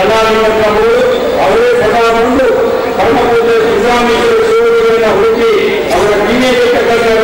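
A man speaks forcefully into a microphone over a loudspeaker, echoing in a large hall.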